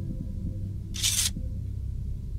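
A short mechanical whoosh sounds as a metal dial turns.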